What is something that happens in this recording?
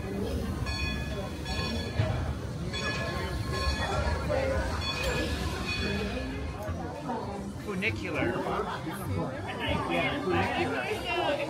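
A crowd of adults chatter nearby outdoors.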